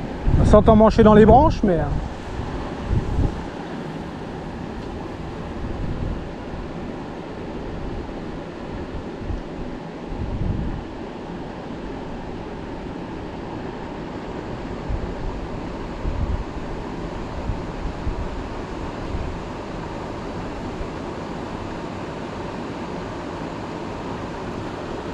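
A river flows and gurgles gently nearby.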